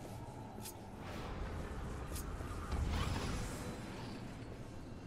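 A magical portal swirls open with a deep whooshing hum.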